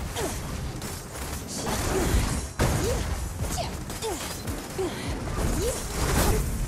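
Electric energy crackles and bursts.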